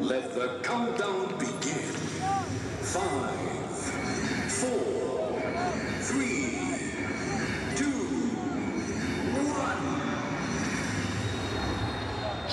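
A man speaks quietly into a headset microphone.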